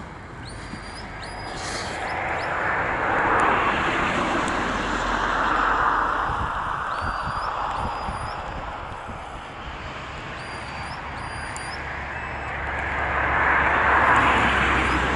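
Wind blows in gusts across open ground.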